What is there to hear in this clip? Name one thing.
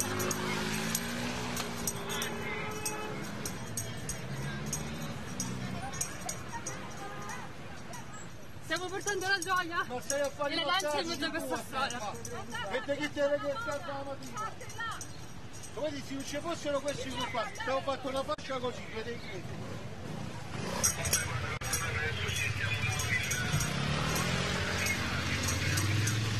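Street traffic hums in the background.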